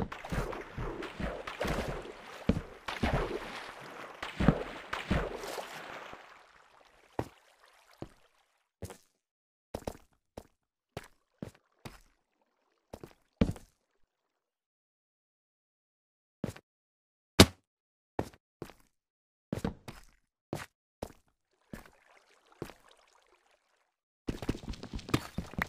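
Footsteps tap on stone at an even pace.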